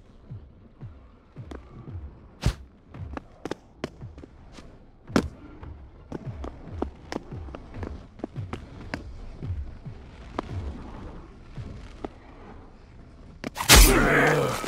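Footsteps thud on a hollow wooden floor.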